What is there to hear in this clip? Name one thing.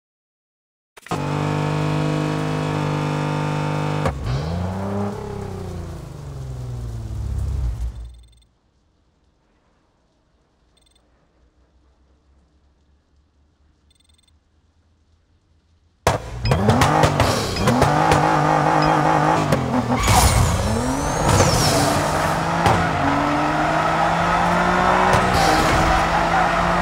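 A sports car engine idles and revs loudly.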